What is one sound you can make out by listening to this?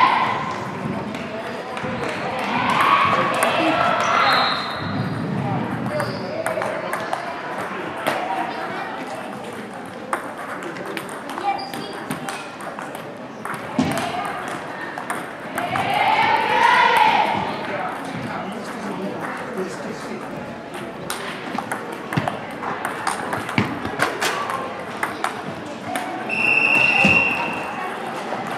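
A table tennis ball clicks back and forth on paddles and a table.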